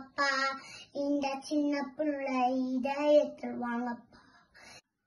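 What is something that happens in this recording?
A young girl speaks clearly and with animation, close by.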